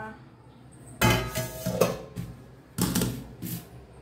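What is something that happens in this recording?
Metal lids clank against metal pots.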